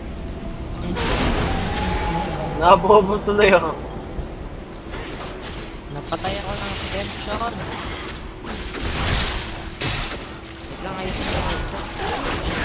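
Magical blasts and weapon hits crash and whoosh in a busy fight.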